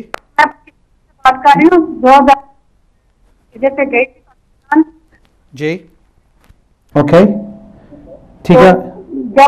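A middle-aged man speaks calmly and clearly into a microphone.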